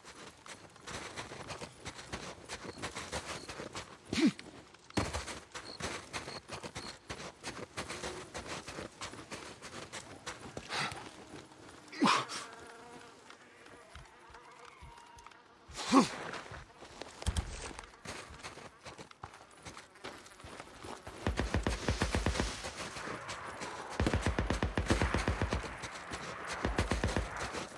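Keyboard keys click rapidly.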